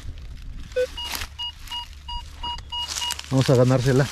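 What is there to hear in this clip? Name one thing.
A metal detector gives a steady electronic tone as it sweeps over the ground.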